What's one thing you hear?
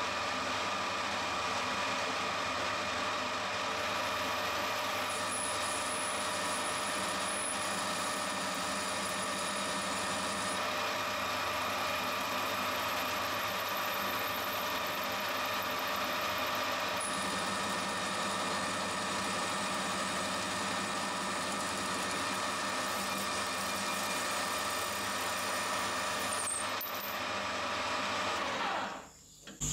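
A metal lathe hums steadily as it spins.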